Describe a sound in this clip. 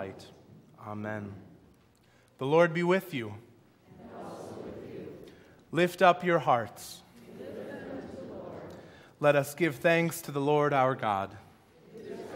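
A man chants aloud in a large echoing room.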